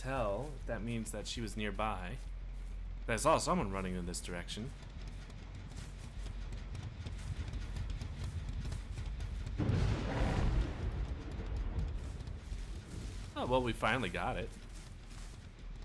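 Footsteps rustle through dry grass and leaves.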